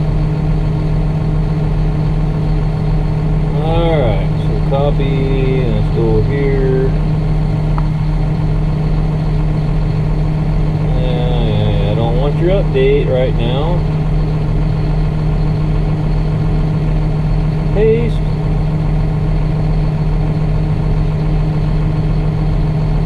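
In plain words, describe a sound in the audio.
A tractor engine rumbles with a steady low drone, heard from inside the cab.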